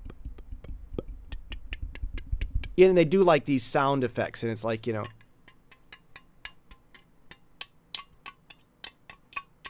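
A man makes quick, rhythmic clicking and popping sounds with his mouth into a microphone.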